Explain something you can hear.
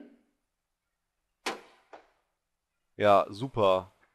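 A heavy wooden crate thuds down onto a metal roof.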